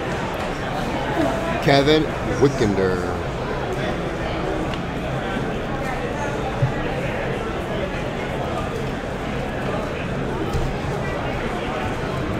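Cards slide and tap against a plastic case.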